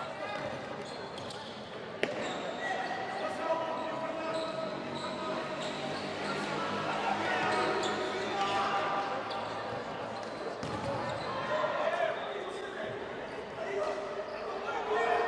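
A crowd of spectators murmurs and shouts in a large echoing hall.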